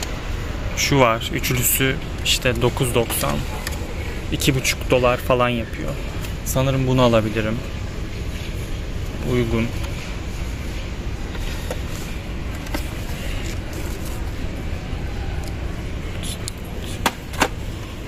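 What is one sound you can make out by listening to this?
A cardboard pack of tins rustles and knocks as a hand handles it.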